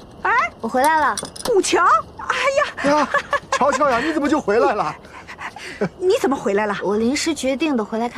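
A middle-aged woman speaks with surprise.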